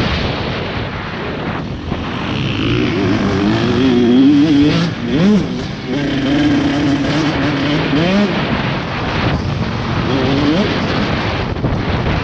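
A motorcycle engine roars close by, revving up and down.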